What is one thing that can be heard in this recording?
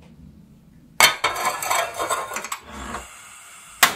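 A pot clanks down onto a stove burner.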